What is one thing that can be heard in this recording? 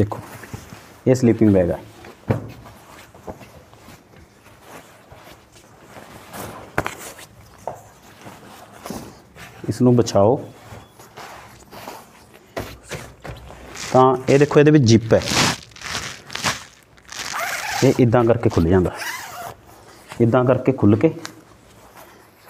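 A man speaks calmly close by, in short phrases.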